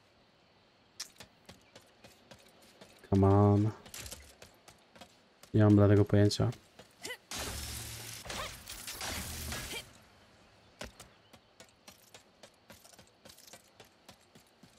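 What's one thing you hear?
Quick light footsteps patter on metal.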